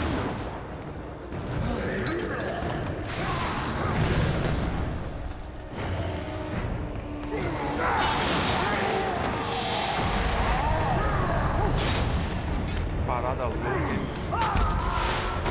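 A sword clangs and slashes in a fight.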